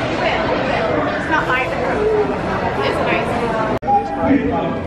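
A crowd of people chatters.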